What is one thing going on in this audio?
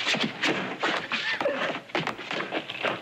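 Two men scuffle with thudding blows.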